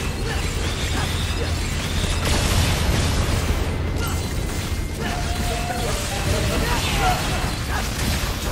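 Sword slashes and energy blasts hit a huge creature in rapid bursts.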